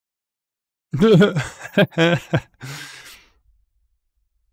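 A young man laughs briefly into a close microphone.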